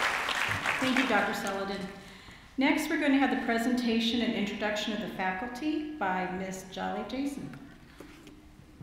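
A woman speaks calmly into a microphone, heard through loudspeakers in a large hall.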